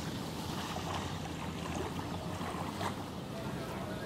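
Gentle waves lap softly at a shore.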